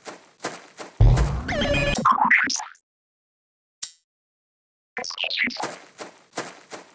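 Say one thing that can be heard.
A game menu chimes and whooshes open and shut.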